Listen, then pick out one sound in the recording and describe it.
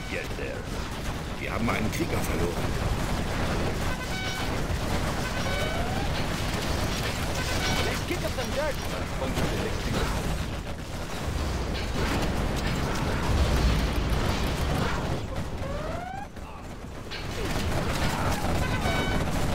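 Gunfire and explosions rumble steadily throughout a battle.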